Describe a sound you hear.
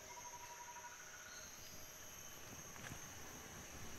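Dry leaves crunch underfoot as a man steps.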